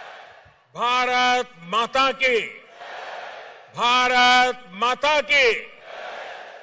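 An elderly man shouts forcefully through a loudspeaker system.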